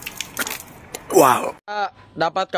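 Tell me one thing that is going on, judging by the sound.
A young man cries out loudly.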